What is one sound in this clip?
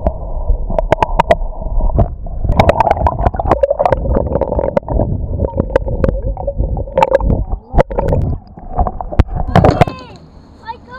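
Water bubbles and churns, heard muffled from under the surface.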